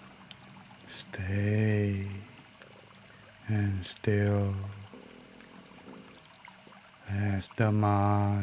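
A man chants slowly in a deep, calm voice.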